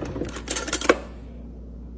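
Metal cutlery clinks and rattles.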